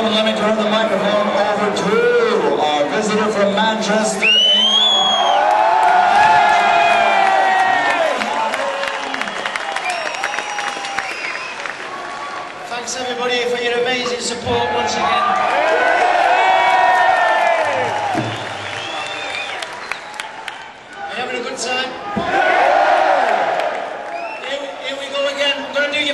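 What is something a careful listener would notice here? A crowd cheers and whistles in a large echoing hall.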